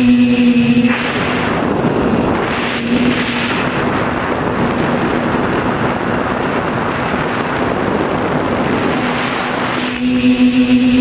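Wind rushes past a fast-flying drone.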